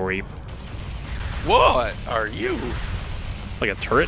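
A blaster fires loud energy shots.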